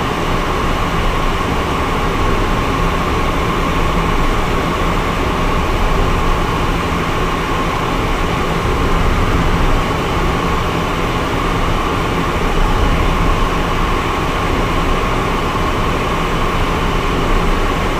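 Wind rushes loudly against the plane.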